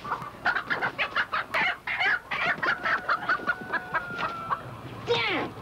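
A chicken squawks and clucks frantically.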